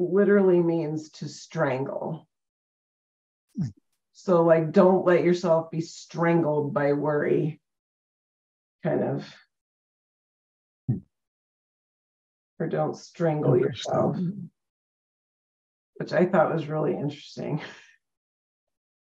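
A woman talks calmly over an online call.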